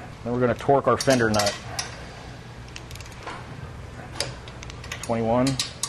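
Metal parts click and tap softly as a wheel is handled.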